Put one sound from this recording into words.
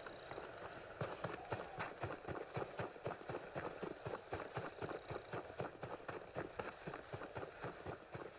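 Footsteps run quickly over grass and leaves.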